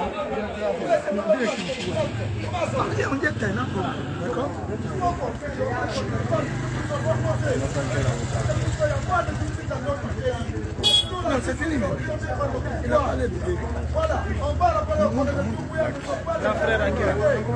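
A motorcycle engine idles and rumbles nearby.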